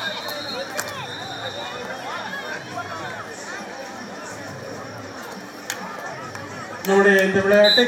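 A crowd murmurs and calls out in the background.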